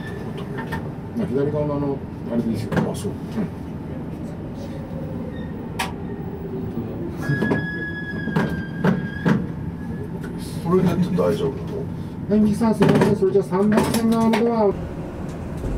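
A train rumbles along the track and slows to a stop.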